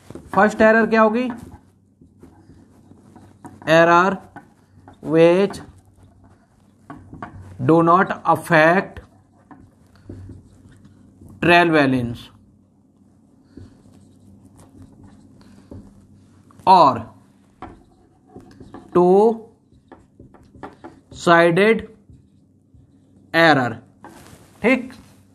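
A man speaks slowly and clearly, in short phrases with pauses, as if dictating.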